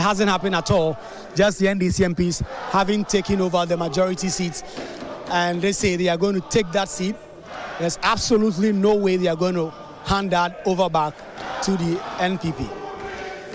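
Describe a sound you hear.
A large crowd of men and women sings and chants loudly in a large echoing hall.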